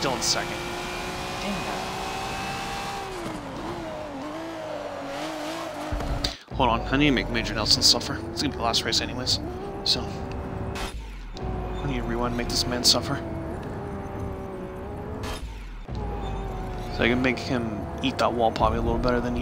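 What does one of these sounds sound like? A racing car engine roars, its pitch rising and falling as it shifts gears.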